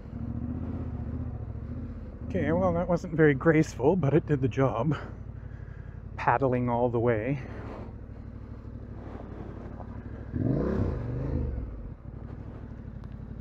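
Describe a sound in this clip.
A motorcycle engine rumbles steadily and revs up in several bursts.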